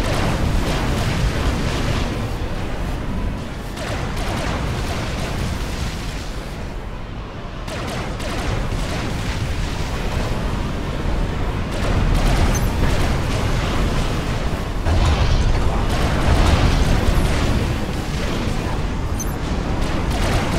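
Explosions and gunfire rumble on and on in a loud battle.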